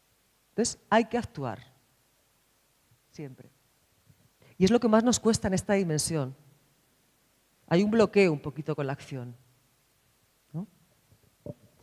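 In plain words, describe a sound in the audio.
A woman speaks with animation into a microphone, in short bursts with pauses.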